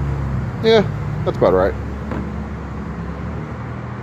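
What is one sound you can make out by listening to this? A plastic bottle is set down on a hard surface with a soft thud.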